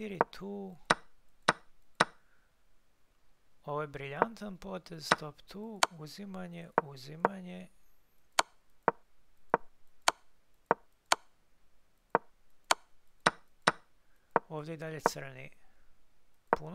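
Chess pieces click sharply as moves are made.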